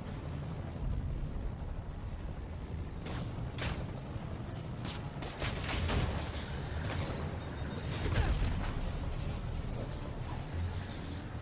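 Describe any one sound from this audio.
Electricity crackles and zaps in loud bursts.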